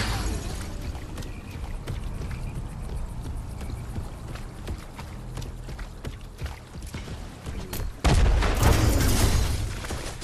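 Footsteps scuff along as a game character runs.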